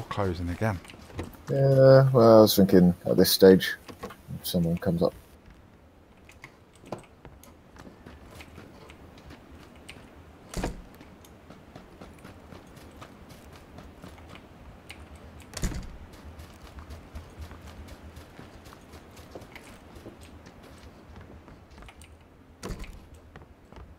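A wooden door swings open with a thud.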